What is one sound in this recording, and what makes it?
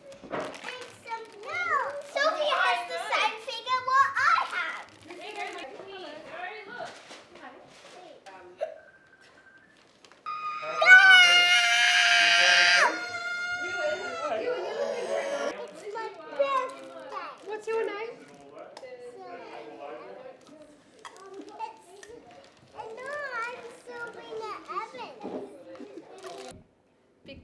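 A young girl talks and sings nearby with animation.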